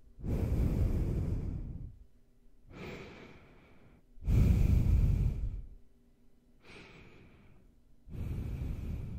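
A man breathes and sniffs through his nose close to a microphone.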